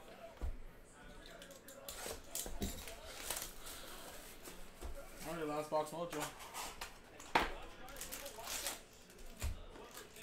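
Cardboard packaging rustles and scrapes as a box is opened.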